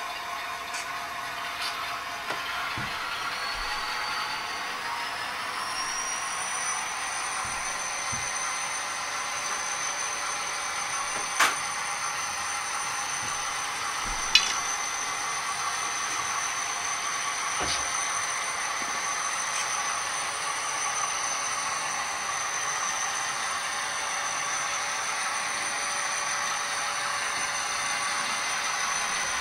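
A model train locomotive hums and whirs steadily as it rolls slowly along the track.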